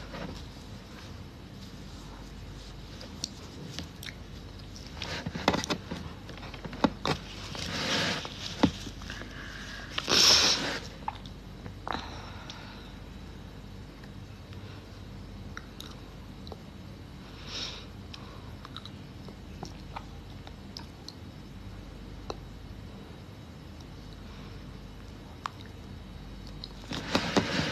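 A young woman speaks softly, close to a phone microphone.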